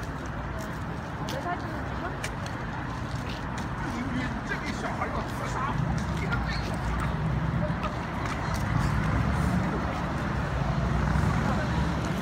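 Footsteps of marching guards tap on stone pavement.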